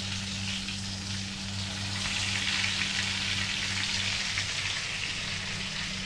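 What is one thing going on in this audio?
Food sizzles in hot oil in a pan.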